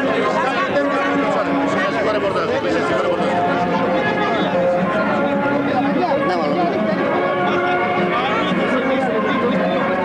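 A man speaks with animation into a handheld microphone.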